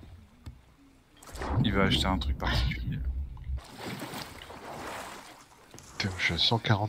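Sea waves wash and splash nearby.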